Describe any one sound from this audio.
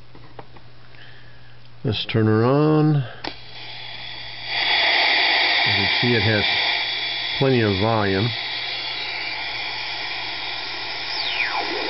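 Static hisses and crackles from a radio receiver.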